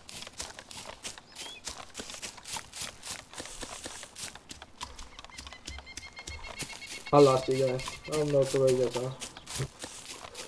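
Footsteps crunch and rustle through undergrowth outdoors.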